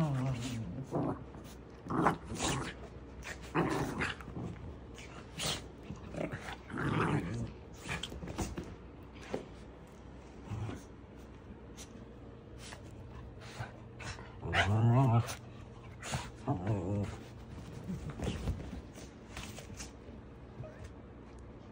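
A small dog gives short sharp yips.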